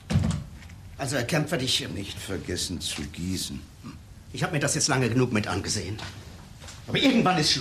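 An older man speaks with animation nearby.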